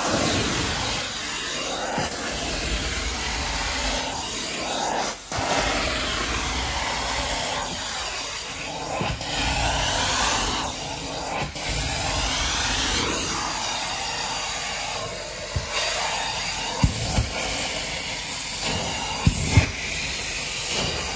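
A carpet cleaning wand sucks loudly with a steady roaring hiss.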